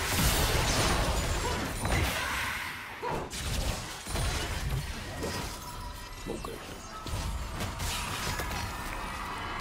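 Magic spells whoosh and blast in quick, busy bursts.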